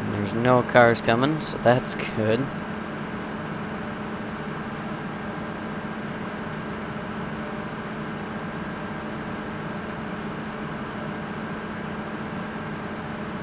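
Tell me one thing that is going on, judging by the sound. A combine harvester engine hums steadily.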